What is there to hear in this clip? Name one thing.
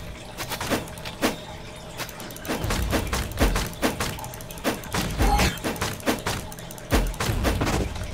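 A blade whooshes in quick slashing swings.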